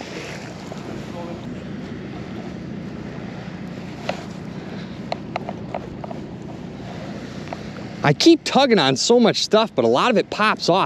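Small waves lap against the shore.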